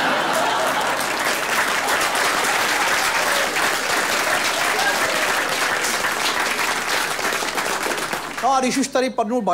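An audience applauds and cheers in a room.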